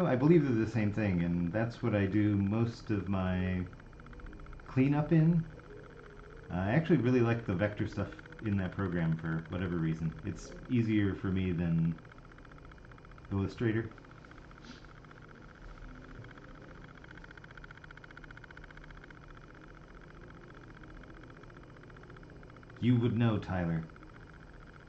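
A middle-aged man talks calmly into a close microphone.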